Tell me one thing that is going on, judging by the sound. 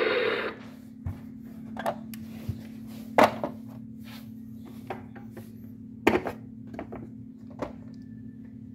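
Plastic buttons on a toy car click as they are pressed.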